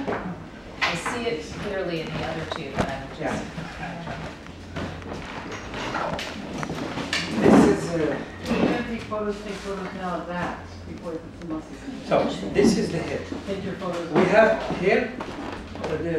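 A man speaks calmly and explains at close range.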